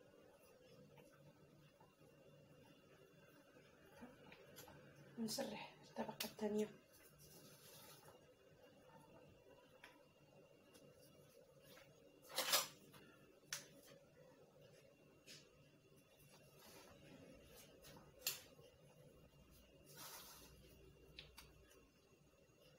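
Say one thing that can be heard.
A silicone brush softly brushes over dough.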